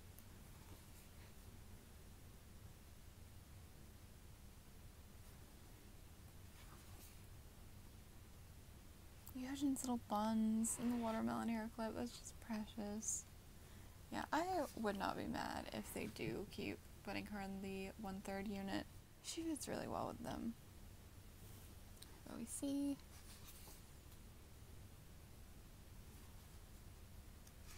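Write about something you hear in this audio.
Pages of a thick book rustle as they are turned by hand.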